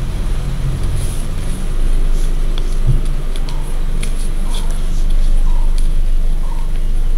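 Fingers crease and fold a sheet of paper.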